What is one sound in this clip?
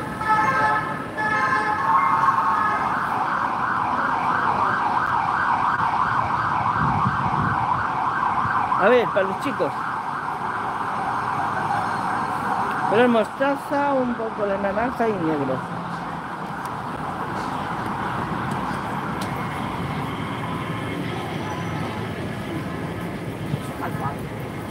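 Traffic rumbles along a nearby road.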